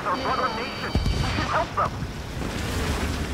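An explosion booms close by.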